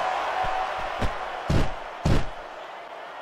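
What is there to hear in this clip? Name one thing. Heavy thuds sound as a body slams onto the ground.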